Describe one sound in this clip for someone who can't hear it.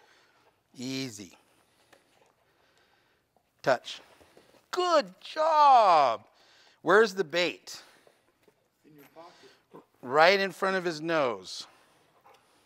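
A man speaks with animation to a dog, in bursts with rising and falling pitch.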